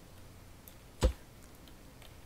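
A block clicks into place.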